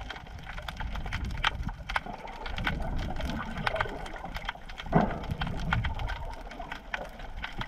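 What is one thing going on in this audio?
Muffled underwater rumbling goes on, with small clicks and crackles.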